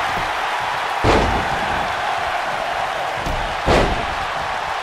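Heavy thuds of bodies slamming onto a wrestling mat ring out.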